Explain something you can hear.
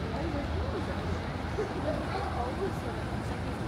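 People chatter faintly nearby on the pavement.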